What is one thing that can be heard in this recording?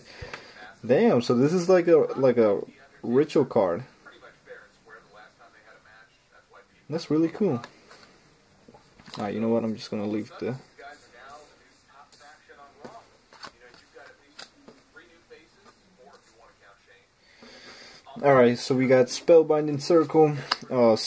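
Playing cards rustle and slide as they are flipped through by hand.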